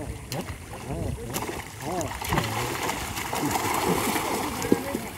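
Water splashes loudly close by.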